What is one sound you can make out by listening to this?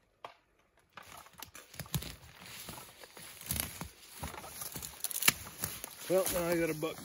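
Leaves and brush rustle as a man pushes through undergrowth close by.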